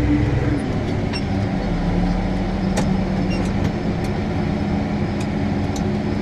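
A cultivator rattles and scrapes through the soil.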